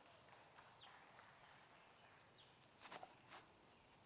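Footsteps scuff on a dirt path.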